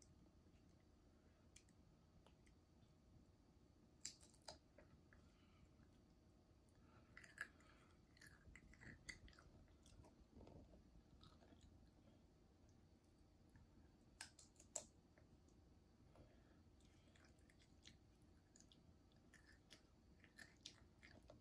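Crisp chips rustle and clink against a glass bowl.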